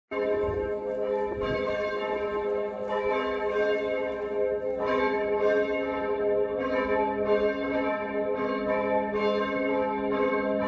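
Church bells ring out in a steady, overlapping peal.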